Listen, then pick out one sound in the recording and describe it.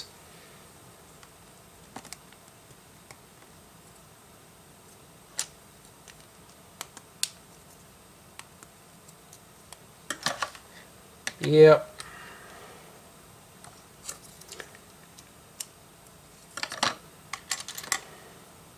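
Plastic toy bricks click and snap together.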